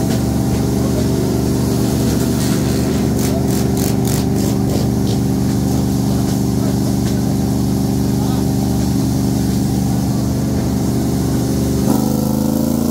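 A motorcycle engine idles loudly with a deep, steady rumble.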